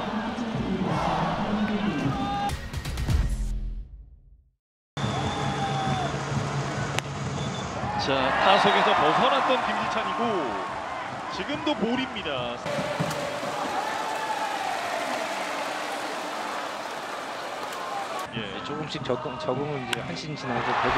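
A large stadium crowd cheers and chants in the distance.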